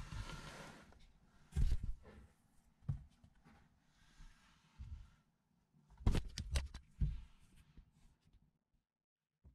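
A cat shuffles and bumps inside a cardboard box.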